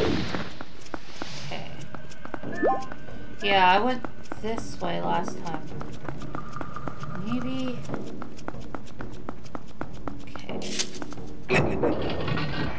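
Quick footsteps patter on a stone floor.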